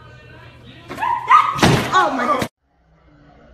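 A man shouts in surprise.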